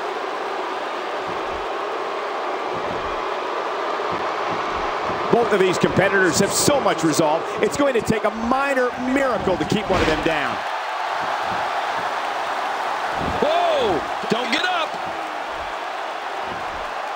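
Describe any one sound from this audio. A large crowd roars steadily in a big echoing arena.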